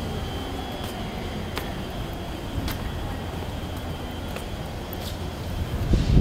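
An electric train hums beside a platform.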